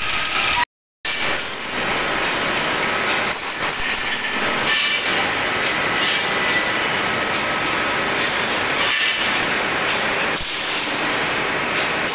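A pneumatic wrench rattles and whirs close by.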